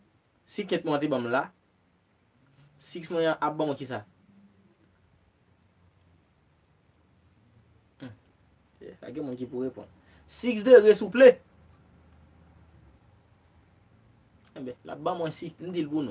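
A young man talks calmly and close by, in short bursts with pauses.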